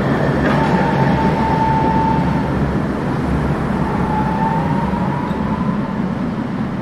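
Tram wheels squeal faintly on the rails.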